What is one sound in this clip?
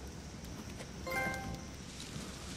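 A bright chime rings once.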